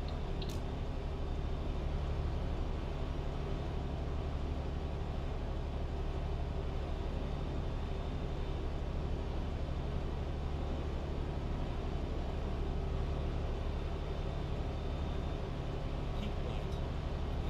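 A truck engine hums steadily at low pitch while driving.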